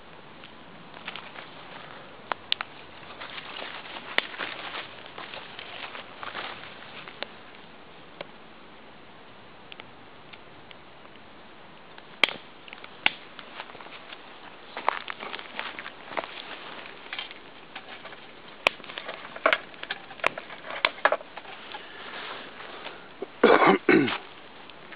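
Wood fire crackles and pops in a small stove outdoors.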